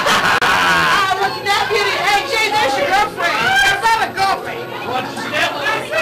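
Men and women laugh close by.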